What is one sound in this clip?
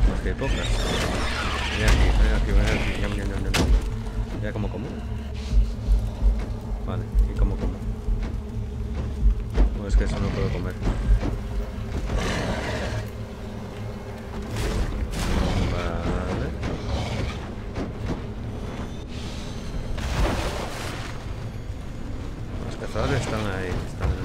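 A large creature's heavy footsteps thud as it runs and leaps.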